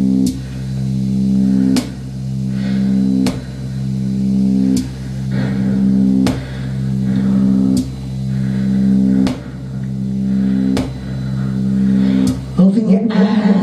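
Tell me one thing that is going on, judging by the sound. A droning electronic loop plays loudly through speakers, pulsing with a click every second and a half.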